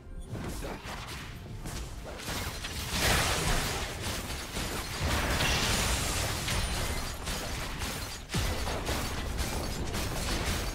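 Game spells blast and crackle in a fast fight.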